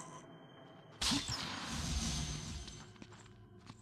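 A magical burst whooshes and crackles.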